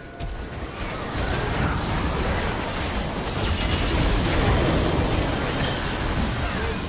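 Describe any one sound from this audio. Game spell effects crackle, whoosh and explode in a busy fight.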